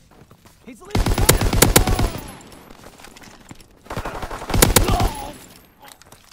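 A machine gun fires loud rapid bursts.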